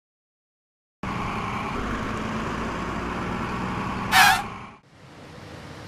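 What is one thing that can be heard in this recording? A tuk-tuk engine putters nearby.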